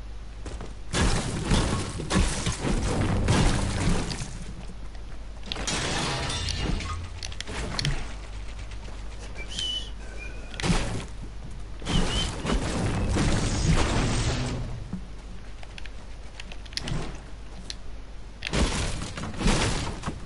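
A pickaxe strikes wood and metal in quick, repeated blows.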